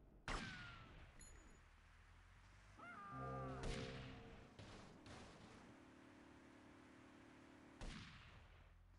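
Gunshots bang sharply, each followed by a short ringing echo.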